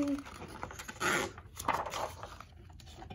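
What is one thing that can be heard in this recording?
A book page turns with a papery rustle.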